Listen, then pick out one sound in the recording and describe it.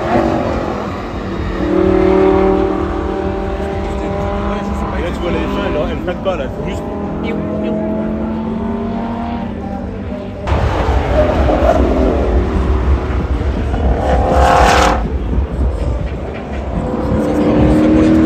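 A sports car engine roars loudly as the car speeds along, its pitch rising and falling through the gears.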